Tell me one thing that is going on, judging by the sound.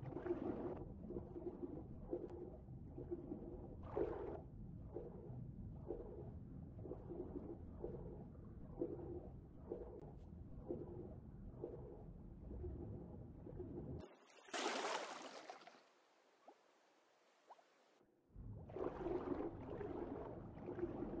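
Muffled water swishes in steady, rhythmic swimming strokes underwater.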